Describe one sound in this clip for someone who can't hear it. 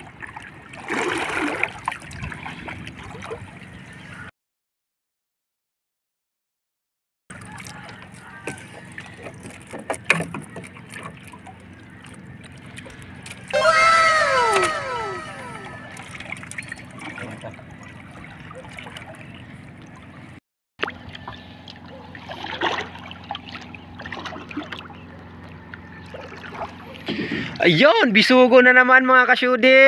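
Water laps against the side of a small boat.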